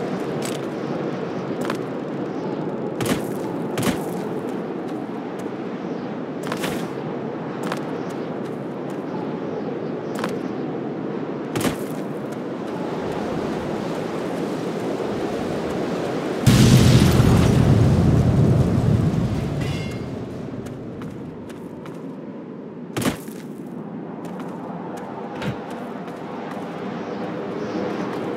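Footsteps clank on metal stairs and crunch over gravel.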